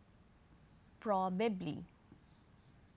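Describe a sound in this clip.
A woman speaks briefly and clearly into a microphone.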